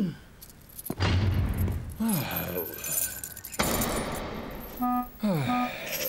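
Keys jingle and turn in a door lock.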